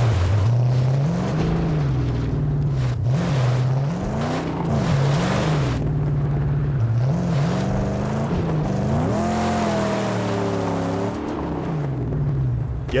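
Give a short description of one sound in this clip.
Tyres crunch and rumble over rough ground.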